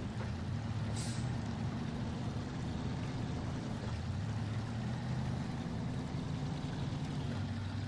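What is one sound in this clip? Truck tyres crunch over rough ground.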